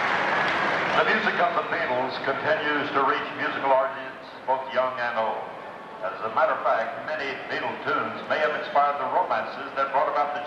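A marching band plays brass and drums.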